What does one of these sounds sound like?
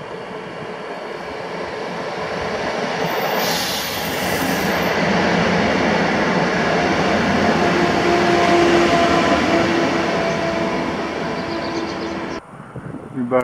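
A passenger train rolls in and brakes with a squeal.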